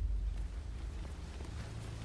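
Footsteps scuff slowly along a paved path.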